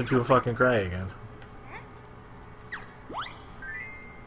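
Short electronic chimes ring out as game choices pop up.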